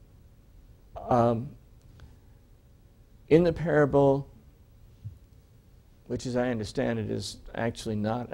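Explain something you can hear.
An elderly man speaks calmly and expressively in bursts, close by.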